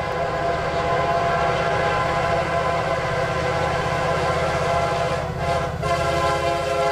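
A train horn blares loudly and steadily.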